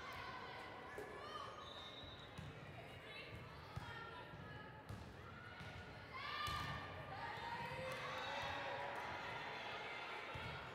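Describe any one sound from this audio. A volleyball is struck with sharp smacks in a large echoing hall.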